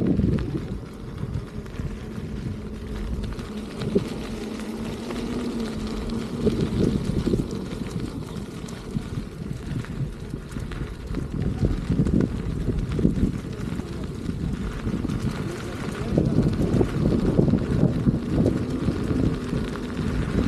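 Small wheels roll and crunch over a gravel path.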